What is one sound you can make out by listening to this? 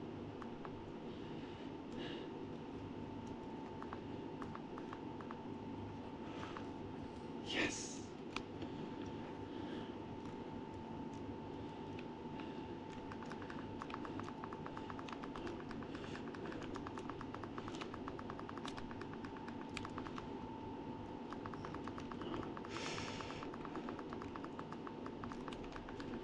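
Buttons on a handheld game console click under a thumb.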